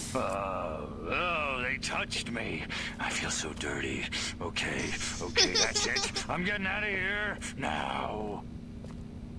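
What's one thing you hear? An elderly man speaks with animation, fretting in a high, comic voice.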